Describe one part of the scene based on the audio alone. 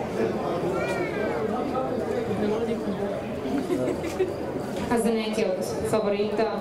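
A crowd of spectators chatters in the distance, outdoors.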